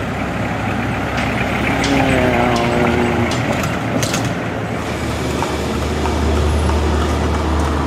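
Car engines hum as old cars drive along a street.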